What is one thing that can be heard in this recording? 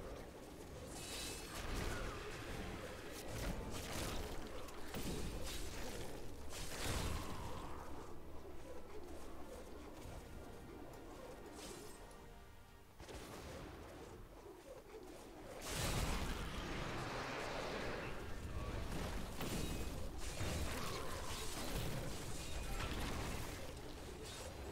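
Spells crackle and blast in loud bursts.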